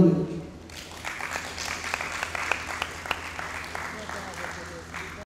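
A woman claps her hands in a scattered rhythm.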